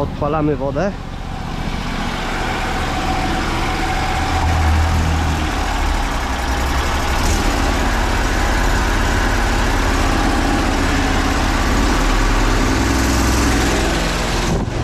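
A motor pump runs with a steady, loud rumble.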